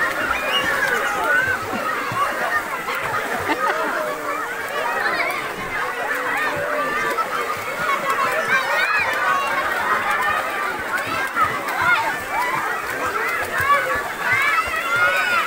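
Water splashes as children kick and paddle.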